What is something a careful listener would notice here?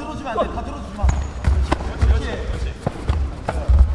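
Kicks thud against padded body armour.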